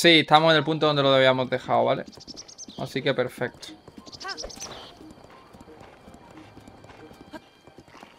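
A horse gallops along a dirt track.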